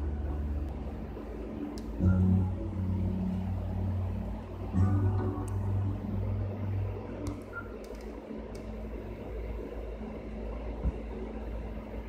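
Instrumental music with a deep bass line plays quietly.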